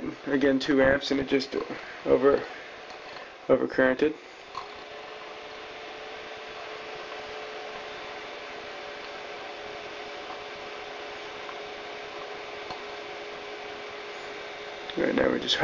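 A knob clicks as it is turned by hand.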